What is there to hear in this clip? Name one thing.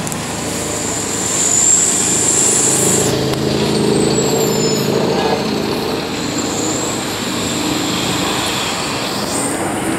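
A bus pulls away with a rising engine roar.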